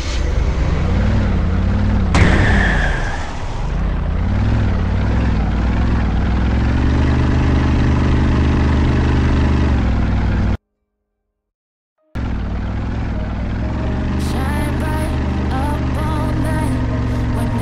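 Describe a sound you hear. A car engine hums steadily and revs as a vehicle drives.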